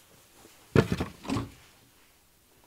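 A wooden easel knocks and creaks as it is moved.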